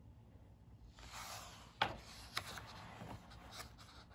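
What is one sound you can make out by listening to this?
A paper page rustles as it is turned.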